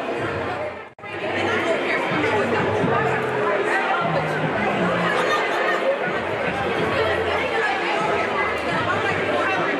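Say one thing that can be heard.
Young women chatter nearby in a large echoing hall.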